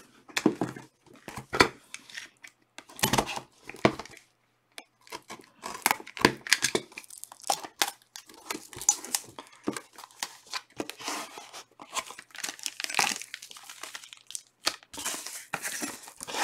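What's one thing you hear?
Foil packs and a cardboard box rustle and tap as hands handle them.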